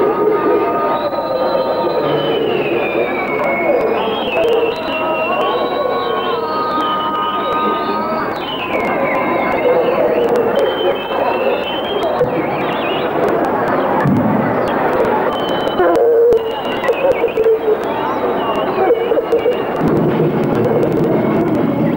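A crowd of people sings together nearby.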